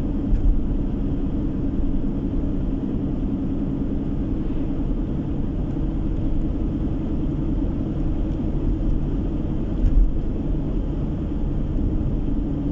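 Tyres roll steadily along a paved road.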